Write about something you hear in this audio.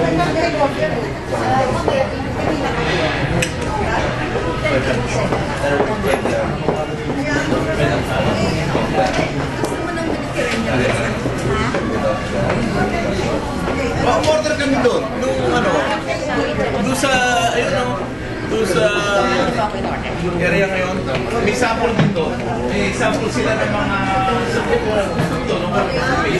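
Many people chatter at once in a busy room.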